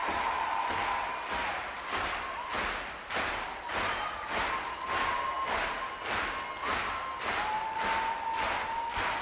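A large crowd claps in rhythm.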